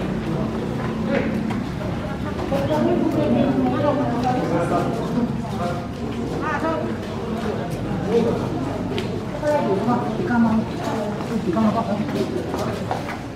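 A crowd of men, women and children chatter nearby outdoors.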